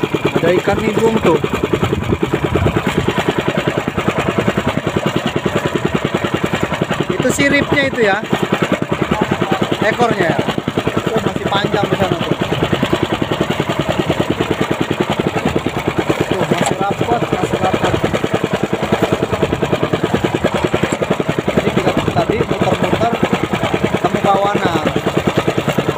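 Water splashes and rushes against a moving boat's hull.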